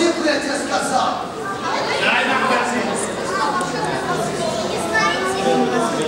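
Several children and adults speak together with animation, echoing in a large hall.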